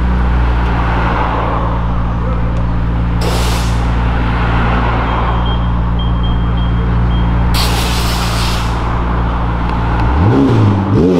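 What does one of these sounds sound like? A sports car engine idles with a deep, steady rumble.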